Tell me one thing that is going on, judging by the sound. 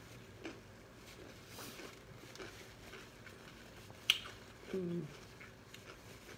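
A woman bites and chews food.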